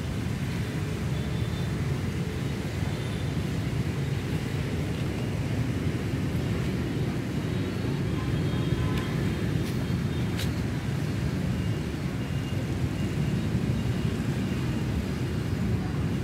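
Wind blows and rumbles through trees.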